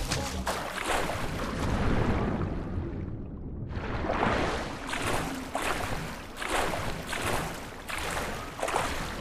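Water splashes in repeated strokes.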